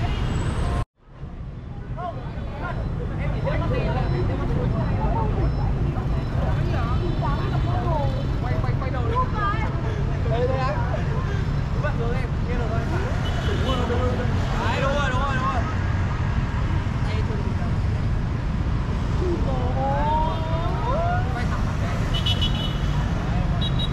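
Motorbikes and cars drive past on a street.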